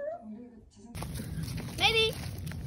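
Dry leaves rustle and crunch under a small dog's paws.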